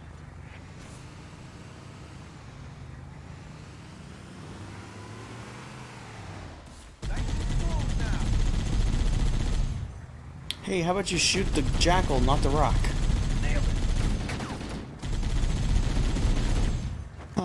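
A vehicle engine rumbles and roars in a video game.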